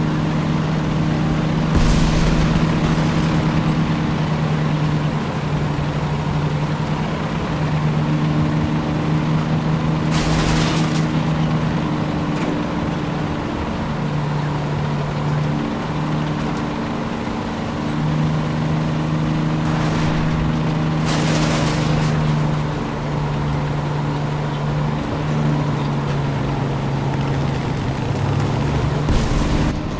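A tank engine drones as the tank drives along.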